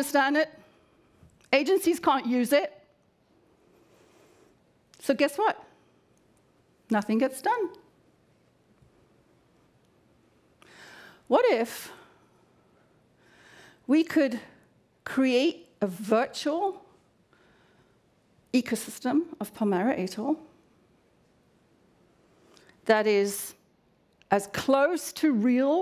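A woman speaks with animation through a microphone in a large hall, pausing often.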